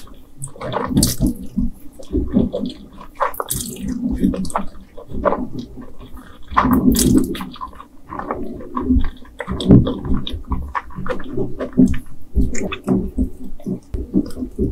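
A woman chews wetly with her mouth close to a microphone.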